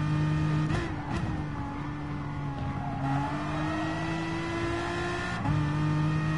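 A racing car engine shifts gears with brief drops in pitch.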